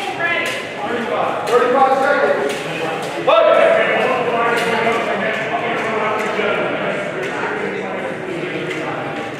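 Men and women chatter in a large echoing hall.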